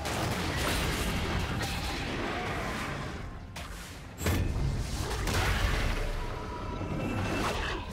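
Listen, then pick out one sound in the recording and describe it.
Fantasy game sound effects of spells and hits ring out.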